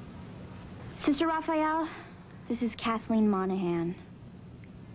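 A girl speaks softly nearby.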